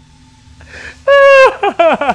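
A young man screams loudly into a microphone.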